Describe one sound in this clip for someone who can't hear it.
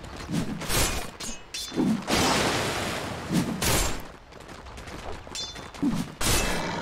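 Sharp magical blasts and clashing hits burst out in quick succession.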